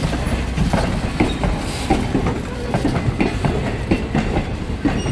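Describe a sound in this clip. Train carriages rumble past close by on the track.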